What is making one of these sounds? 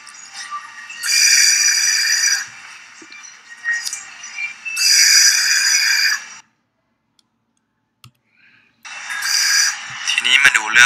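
A ventilator hisses in rhythmic bursts of air.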